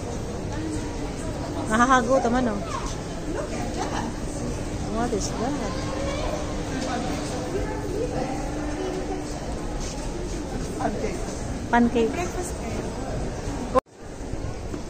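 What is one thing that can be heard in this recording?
Voices of people murmur and talk in a large echoing hall.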